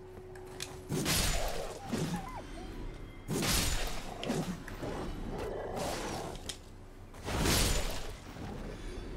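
Weapon blows strike with sharp thuds.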